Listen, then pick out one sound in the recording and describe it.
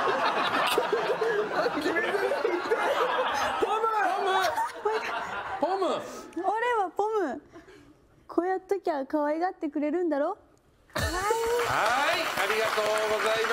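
A studio audience laughs and chatters loudly.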